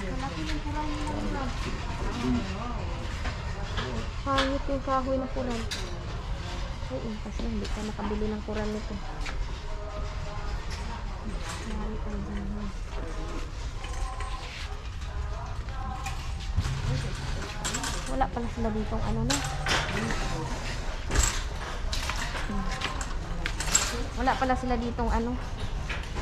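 A shopping cart rattles as it rolls along.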